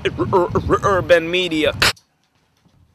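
A young man raps rhythmically close to the microphone.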